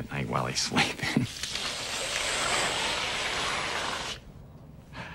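A can of shaving foam hisses.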